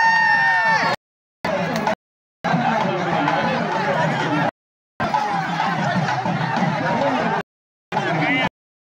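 A large crowd shouts and cheers outdoors.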